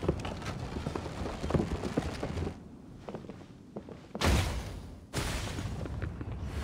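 Footsteps thud on wooden planks.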